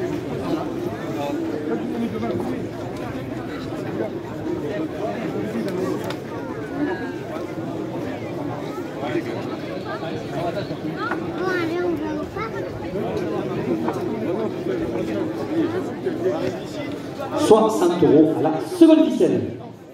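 A large crowd murmurs and chatters across an open arena.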